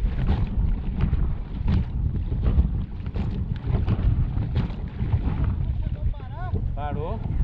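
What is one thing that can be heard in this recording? A hull slaps over choppy water.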